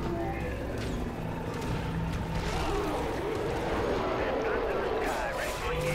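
Blades slash and squelch through flesh in rapid strikes.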